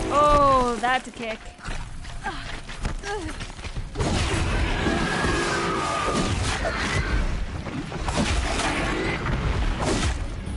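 Heavy metal blows clang and thud in a fight.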